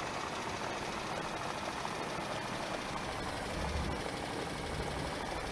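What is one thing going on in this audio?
A heavy engine rumbles steadily.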